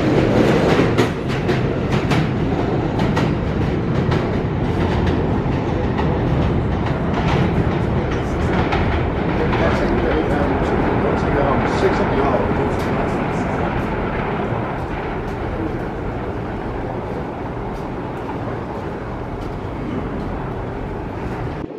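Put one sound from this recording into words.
A train approaches along curved tracks, its wheels clattering over rail joints.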